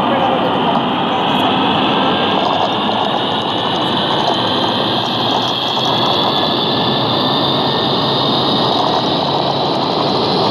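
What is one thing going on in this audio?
Jet engines roar steadily as an airliner speeds down a runway.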